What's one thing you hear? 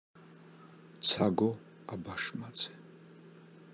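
A middle-aged woman speaks briefly and calmly into a microphone.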